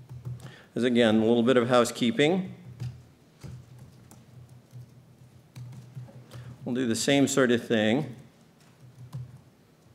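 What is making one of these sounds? Keys clatter on a laptop keyboard.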